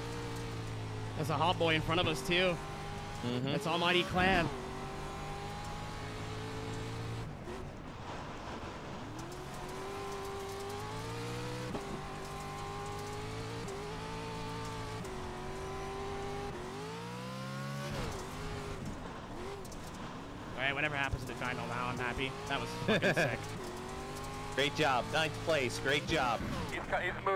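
A racing car engine roars and revs up and down through gear changes.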